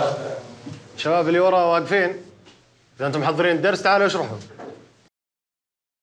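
A middle-aged man speaks firmly to a class.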